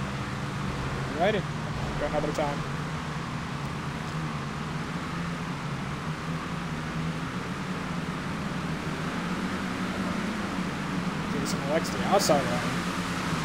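Race car engines drone steadily in the distance.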